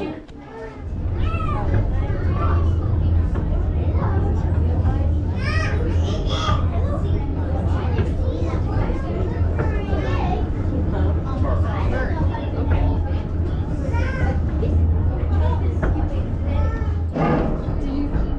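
A rail car hums and rumbles steadily as it moves along the track.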